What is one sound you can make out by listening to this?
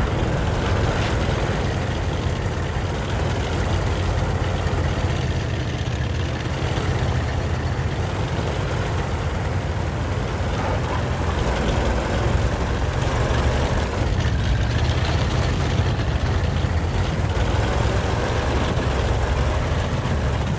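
A tank engine rumbles low and steady as the tank drives.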